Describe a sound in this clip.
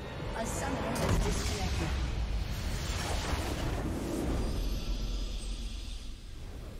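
A triumphant game fanfare swells up and rings out.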